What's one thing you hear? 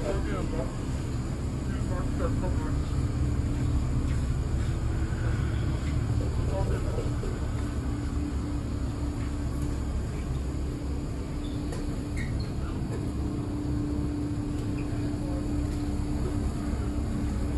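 A refrigerated display case hums steadily.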